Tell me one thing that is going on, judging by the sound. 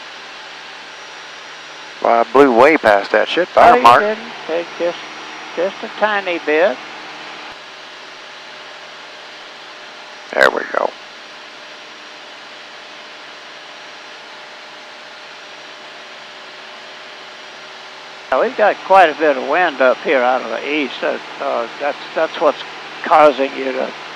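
An aircraft engine drones steadily in the background.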